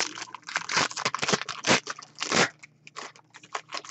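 Plastic wrapping crinkles and tears as hands pull it open.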